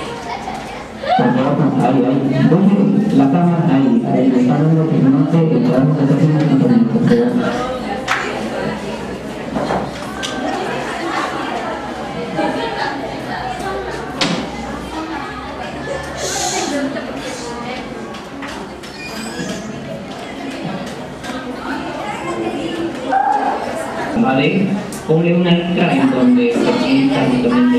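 A pen taps against a board.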